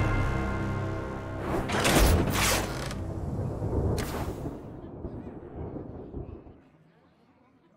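A game's defeat fanfare plays loudly and then fades.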